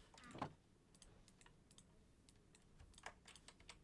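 Soft clicks tick as items are picked up and placed.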